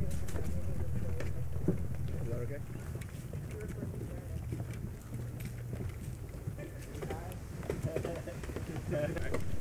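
Footsteps tread on a wooden boardwalk.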